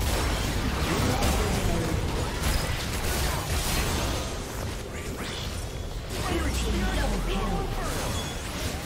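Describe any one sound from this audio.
Video game spell blasts and hits crackle and boom in a busy battle.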